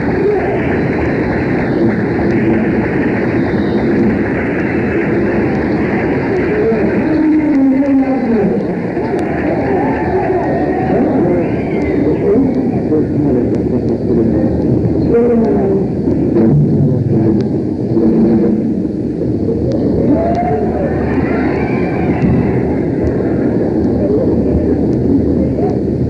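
A rock band plays electric guitars loudly on stage.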